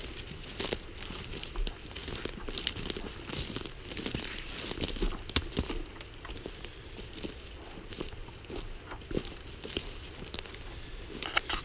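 Footsteps crunch over dry leaves and twigs.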